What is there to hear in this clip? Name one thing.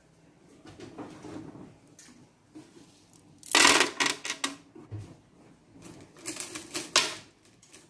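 Small pebbles clatter into a plastic tub of water.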